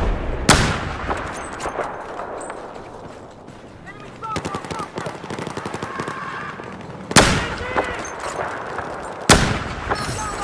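A sniper rifle fires loud, sharp shots that echo away.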